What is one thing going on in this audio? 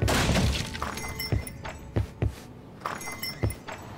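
A door opens with a wooden clunk.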